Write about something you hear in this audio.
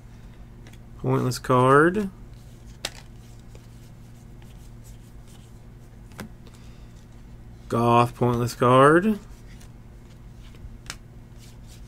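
Cardboard cards flick and rustle as they are shuffled by hand.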